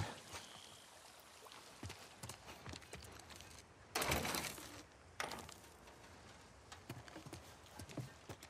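Footsteps move slowly across a wooden floor.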